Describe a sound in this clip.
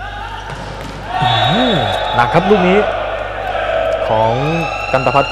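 A crowd cheers in an indoor hall.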